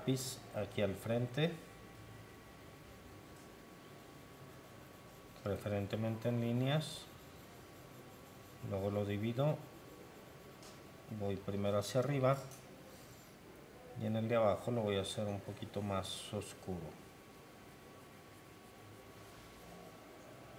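A graphite pencil scratches on paper in short shading strokes.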